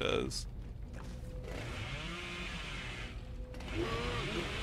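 A chainsaw revs loudly.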